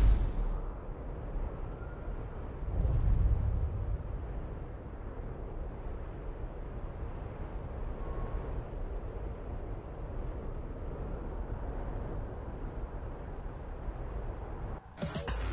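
A car engine roars steadily as a car speeds down a road.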